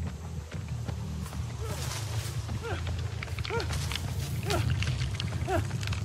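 Footsteps rustle through dry grass and leaves.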